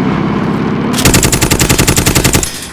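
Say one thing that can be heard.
A machine gun fires a rapid, loud burst.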